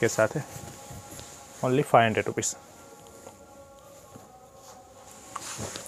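Fabric rustles as it is lifted and laid down.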